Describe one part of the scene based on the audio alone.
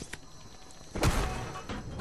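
A pickaxe strikes and smashes wood with a sharp crack.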